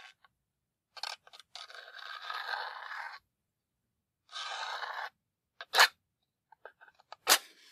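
A match scrapes several times against a rough striker.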